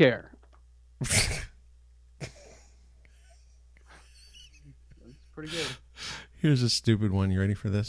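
A middle-aged man laughs, heard through an online call.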